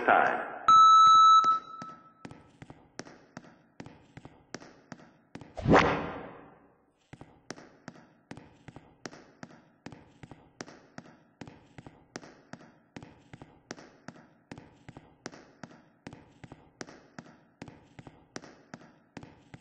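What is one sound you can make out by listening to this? An elevator ticks steadily in a quick, even rhythm as it travels.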